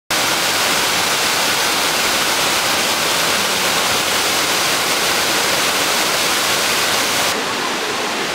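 A waterfall rushes and splashes steadily.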